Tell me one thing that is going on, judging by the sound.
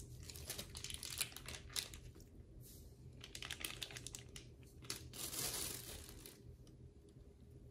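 Hands handle raw meat with soft wet rustling sounds.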